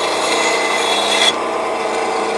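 A band saw blade cuts through a wooden dowel.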